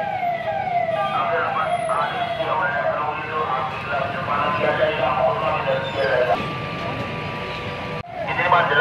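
Men talk loudly nearby, several voices at once.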